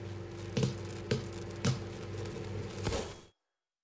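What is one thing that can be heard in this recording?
A menu selection clicks once.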